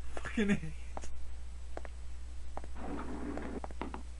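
Lift doors slide shut.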